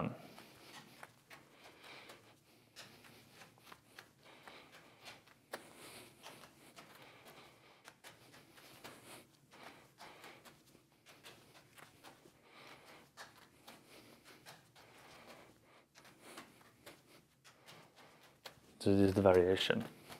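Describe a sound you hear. Juggling balls slap softly into a man's hands.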